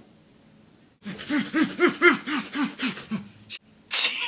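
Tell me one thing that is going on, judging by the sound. A man laughs loudly close by.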